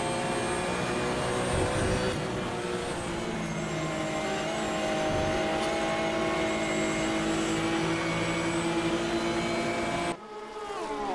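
A racing car engine roars loudly at high speed.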